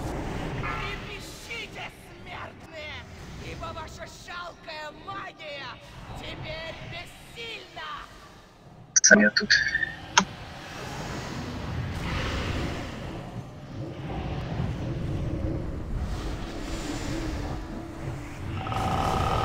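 Magic spells whoosh and burst in a busy fight.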